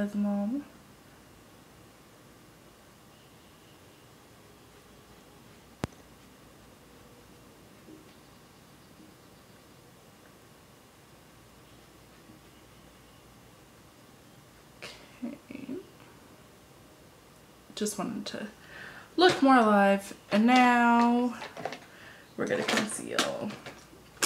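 A young woman speaks close to a microphone, calmly and with pauses.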